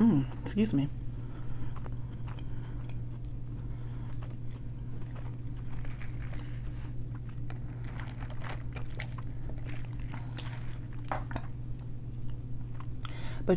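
A woman chews food with crunchy, wet mouth sounds.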